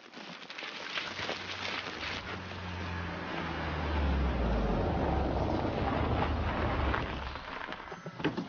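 A car engine rumbles as a car drives up and stops.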